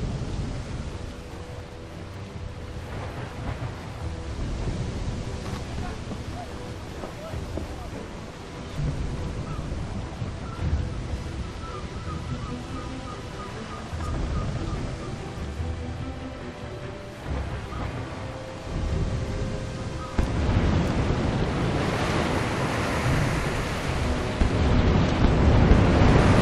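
Stormy waves wash and splash against a wooden ship's hull.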